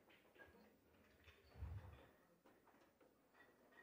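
Billiard balls click together once on a pool table.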